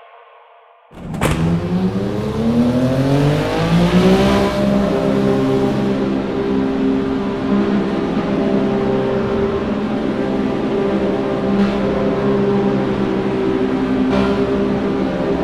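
A race car engine roars loudly, rising in pitch and then holding steady.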